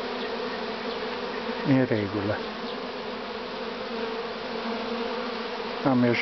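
Bees buzz steadily around hives outdoors.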